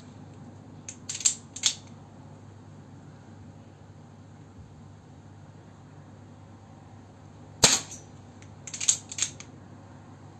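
An air pistol's mechanism clicks and clacks as it is cocked and loaded.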